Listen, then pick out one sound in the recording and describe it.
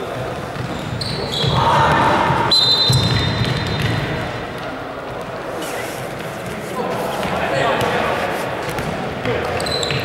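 A ball thuds as it is kicked and bounces on a wooden floor.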